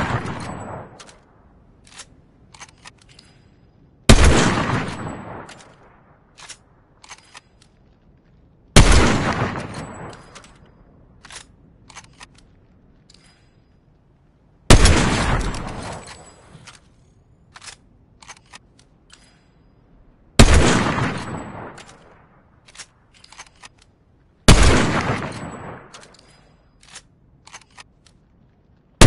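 A rifle bolt clicks as it is reloaded.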